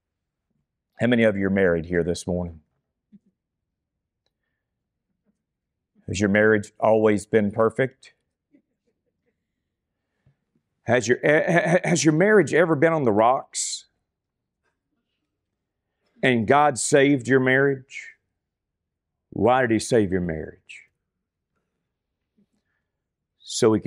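A man speaks calmly into a microphone in short phrases with pauses.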